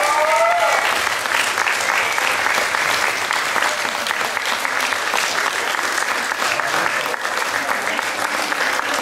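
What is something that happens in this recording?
An audience claps and cheers in a large room.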